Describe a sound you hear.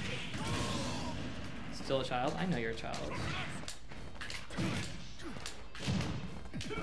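Fighting game sound effects clash and thump.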